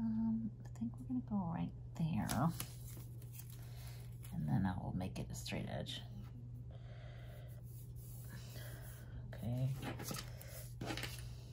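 Sticky tape peels off a roll with a crackle.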